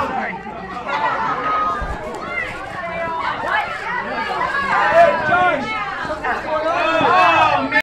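A crowd of young people shouts and screams excitedly.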